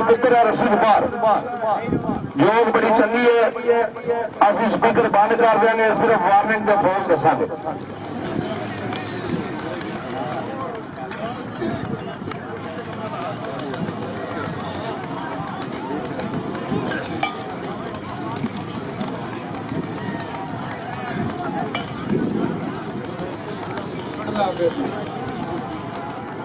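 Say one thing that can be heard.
A crowd of men chatters and calls out outdoors.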